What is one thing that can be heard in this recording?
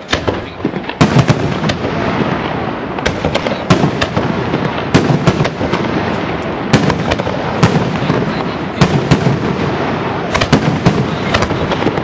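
Fireworks crackle and fizzle in the sky.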